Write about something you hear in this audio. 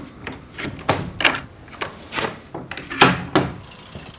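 A metal door latch clicks open.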